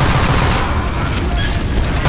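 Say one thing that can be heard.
An explosion booms and fire roars.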